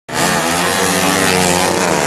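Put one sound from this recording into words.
A motorcycle speeds past close by.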